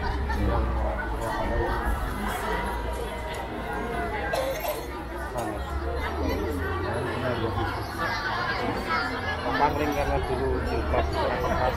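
A crowd of onlookers chatters along an outdoor street.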